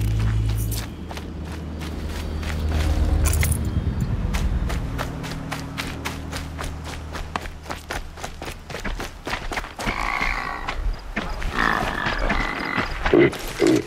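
Footsteps crunch quickly through snow and grass.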